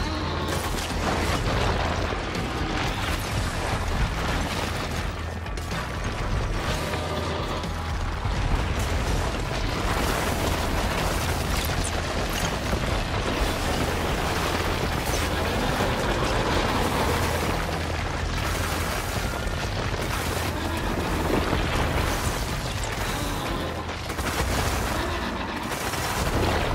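Rock debris crashes and clatters.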